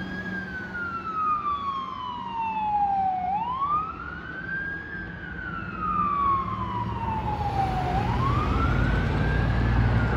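A fire engine siren wails, slowly rising and falling as it drives away.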